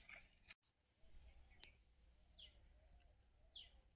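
Dry sticks rattle and scrape as they are handled.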